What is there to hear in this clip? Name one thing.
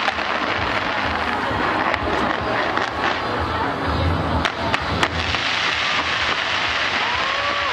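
Fireworks boom with deep bangs.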